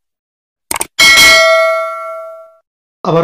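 A bell chime rings once and fades.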